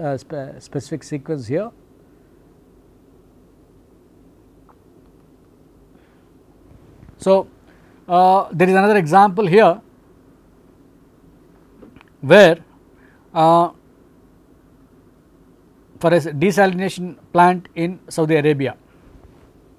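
A middle-aged man speaks calmly into a close microphone, lecturing in bursts with pauses.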